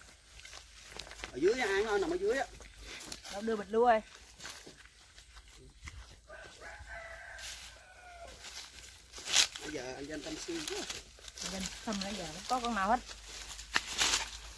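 Footsteps rustle through dry grass and leaves.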